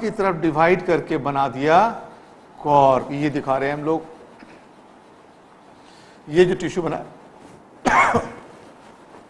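A middle-aged man speaks calmly through a microphone, explaining.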